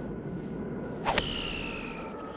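A golf club strikes a ball with a sharp whack.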